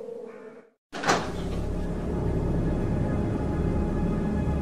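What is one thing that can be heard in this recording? A heavy door creaks open slowly.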